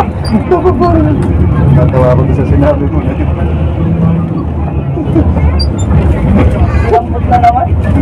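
A bus engine hums low.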